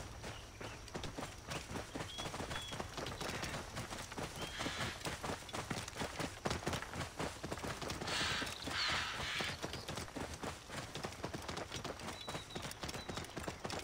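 Hooves clop steadily on a dirt path.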